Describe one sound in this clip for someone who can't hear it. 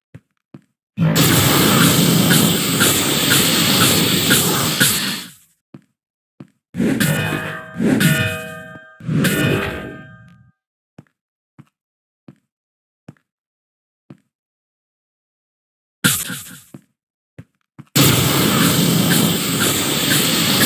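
A loud crackling blast roars and hisses.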